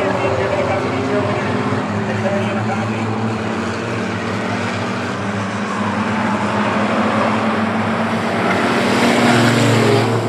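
Race car engines roar loudly, growing louder as the cars come near.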